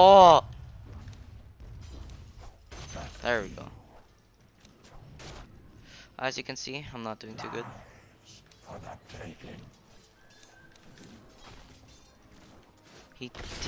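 Fantasy battle sounds of clashing blows and magic zaps ring out in quick bursts.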